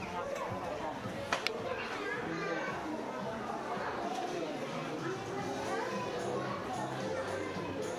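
A crowd of adults and children chatters indoors.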